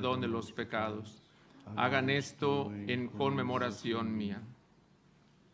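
A man chants into a microphone in a large echoing hall.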